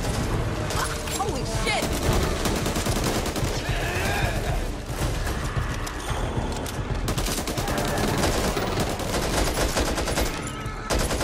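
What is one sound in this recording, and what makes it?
Rapid gunfire bursts crack loudly.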